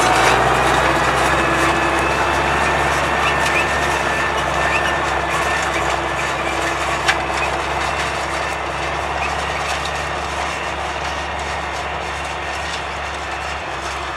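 A tractor engine drones steadily nearby.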